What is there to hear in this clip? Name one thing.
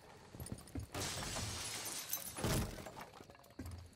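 A wooden barricade smashes and splinters apart.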